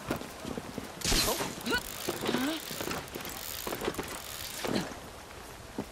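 Climbing gear and clothing rustle and thud against a wall.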